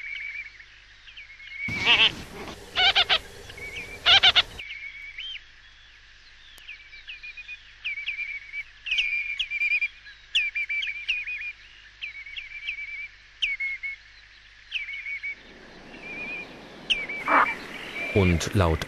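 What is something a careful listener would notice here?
Shorebirds call with sharp, repeated piping notes.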